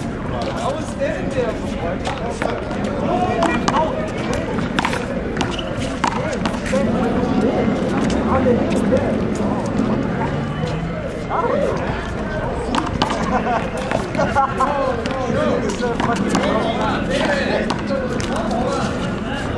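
Sneakers scuff and squeak on concrete.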